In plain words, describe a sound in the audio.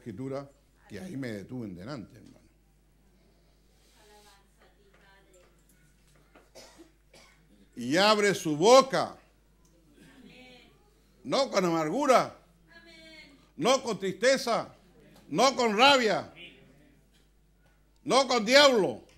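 An elderly man speaks with emphasis into a microphone, in bursts with pauses.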